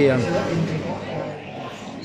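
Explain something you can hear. A man gulps a drink from a can.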